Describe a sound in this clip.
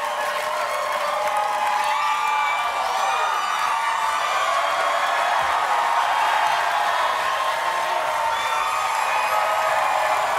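A large audience applauds steadily.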